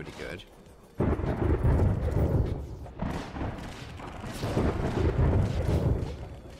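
Video game explosions boom and rumble in rapid bursts.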